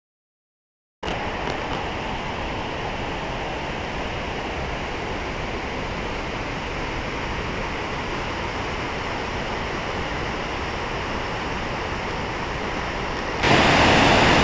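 A waterfall roars steadily in the distance.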